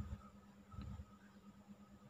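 Liquid pours from a glass cylinder into a plastic bottle.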